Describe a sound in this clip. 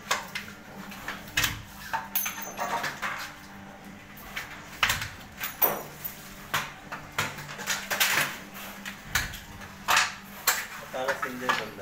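A manual pipe bender creaks and clanks as its lever is pulled.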